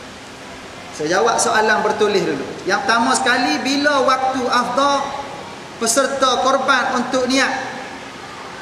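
A man chants melodically into a close microphone.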